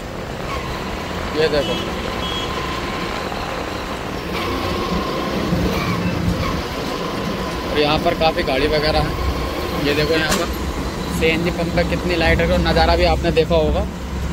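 Traffic rumbles steadily along a busy road outdoors.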